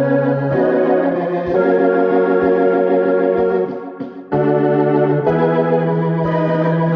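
A piano plays chords close by.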